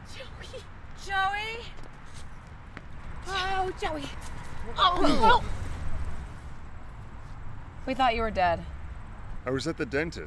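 A young woman talks with animation nearby.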